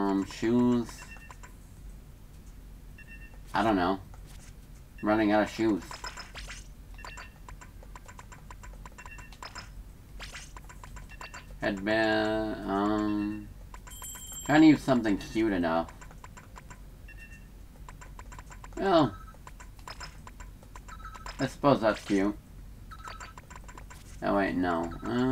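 A young man speaks casually and close to a microphone, in short bursts.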